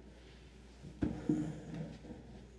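A chair scrapes and thumps as a man stands up from a table.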